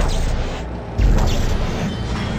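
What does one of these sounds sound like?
An electric charge crackles and hums.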